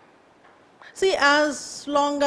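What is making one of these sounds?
A woman speaks with animation into a nearby microphone.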